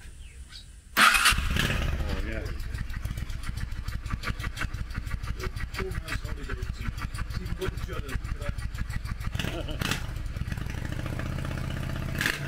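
A motorcycle engine starts up and idles with a rapid, steady rumble close by.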